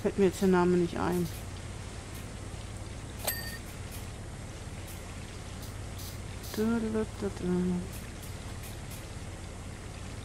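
A pressure washer sprays water in a steady hiss.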